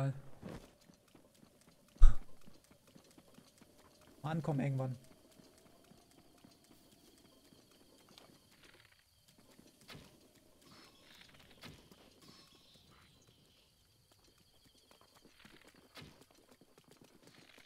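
Light footsteps run across grass.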